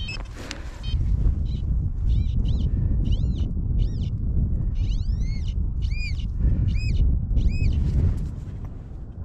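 A trowel scrapes and digs through loose soil.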